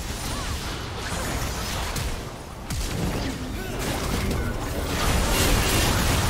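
Magic spells whoosh and crackle as game characters fight.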